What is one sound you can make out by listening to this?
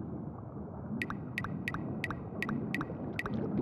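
Short bright game ticks repeat quickly and evenly.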